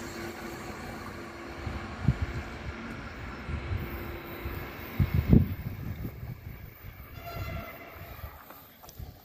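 A train rumbles as it slowly approaches from a distance.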